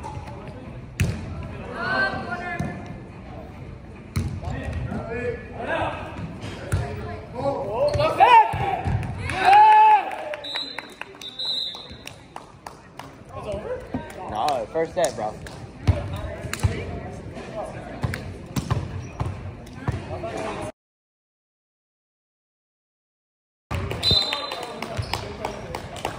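Young men shout and cheer in a large echoing gym.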